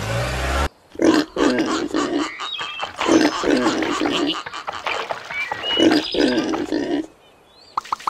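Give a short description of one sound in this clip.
Cartoon pigs grunt and squeal.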